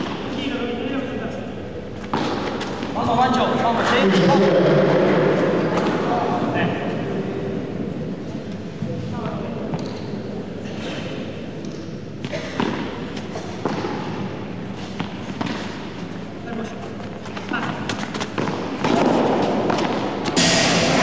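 Rackets strike a ball back and forth with sharp pops.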